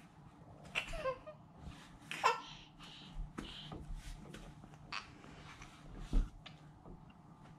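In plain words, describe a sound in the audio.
A baby babbles and squeals happily close by.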